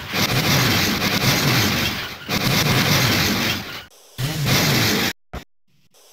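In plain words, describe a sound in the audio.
A monster truck loudly crushes cars with crunching metal.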